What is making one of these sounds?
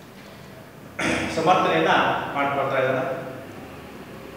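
A young man speaks clearly and calmly, close by.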